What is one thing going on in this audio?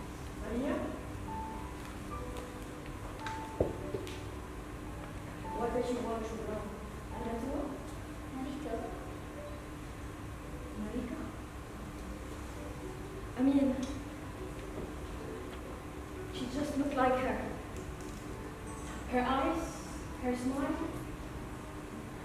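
A man speaks calmly, heard from a distance in a large room.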